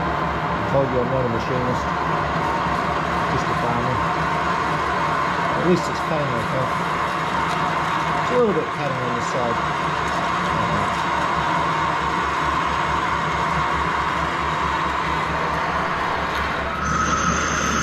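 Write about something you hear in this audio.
A drill bit grinds through steel with a rough scraping whine.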